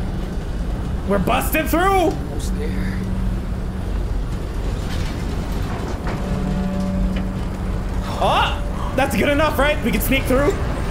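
A teenage boy shouts with strain nearby.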